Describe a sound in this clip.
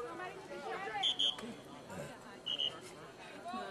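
A referee blows short, sharp whistle blasts.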